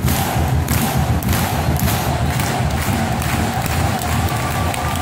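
Spectators clap their hands rhythmically close by.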